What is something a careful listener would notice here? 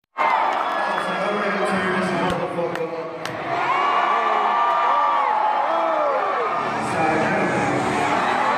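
A performer sings into a microphone.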